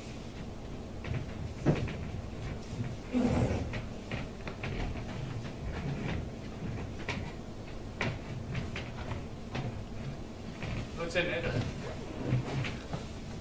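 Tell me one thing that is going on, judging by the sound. Bare feet thump and slide on a wooden stage floor.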